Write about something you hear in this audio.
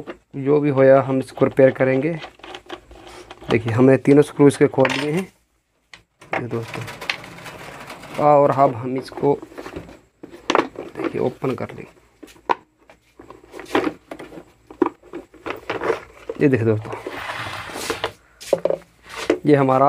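Plastic parts of a fan knock and rattle as they are handled.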